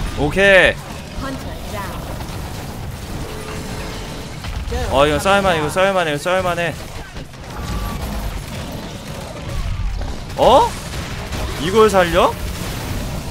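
A large beast roars and growls in short bursts.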